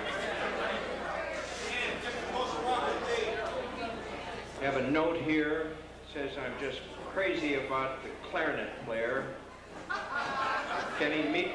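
Several men talk and laugh nearby in a lively room.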